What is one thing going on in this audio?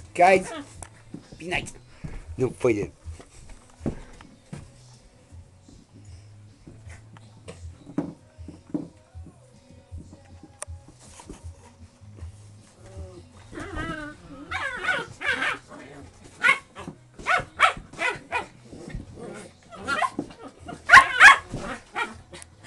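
Puppies growl and yip playfully as they wrestle.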